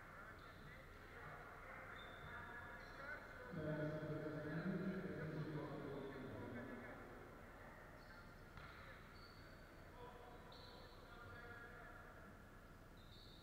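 Voices of players and spectators echo through a large hall.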